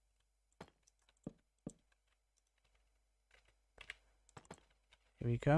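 Wooden blocks are placed with short, soft knocks.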